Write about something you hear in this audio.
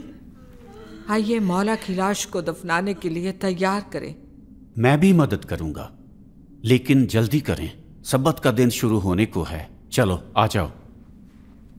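An elderly man speaks with feeling, close by.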